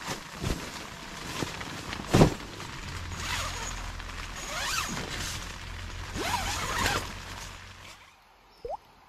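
Tent fabric rustles and flaps as a person climbs inside.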